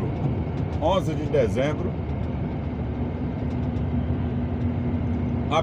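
A vehicle engine rumbles steadily while driving along a road.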